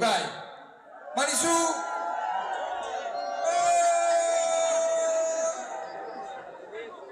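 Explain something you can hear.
A band plays live music loudly in a large hall.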